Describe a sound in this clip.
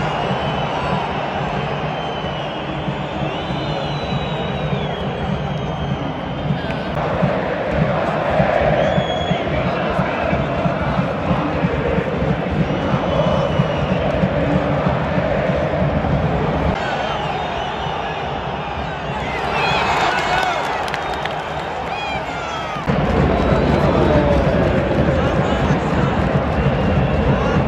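Shrill whistles from a stadium crowd rise and fall.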